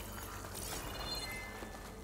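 Water gushes and splashes.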